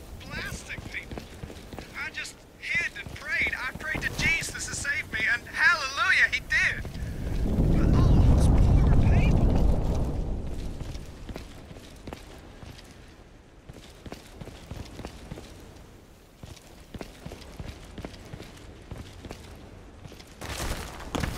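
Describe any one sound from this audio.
Footsteps tread steadily across a hard stone floor.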